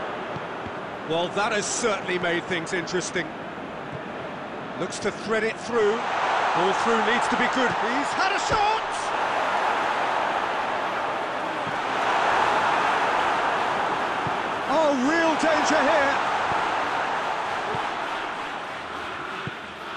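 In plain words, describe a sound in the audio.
A stadium crowd roars steadily, swelling and fading.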